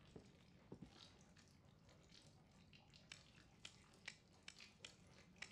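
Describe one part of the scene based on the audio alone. A combination lock's metal dials click as they turn.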